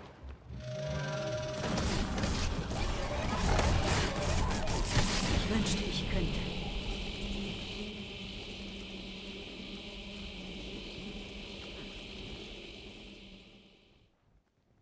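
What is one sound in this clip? Sword blows and magic bursts clash in a fight.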